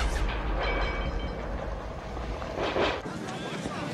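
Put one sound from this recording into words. An explosion booms and debris rumbles down.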